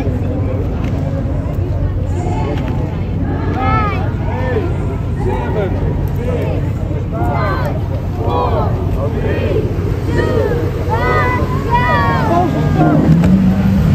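Speedboats race across the water, churning up hissing spray.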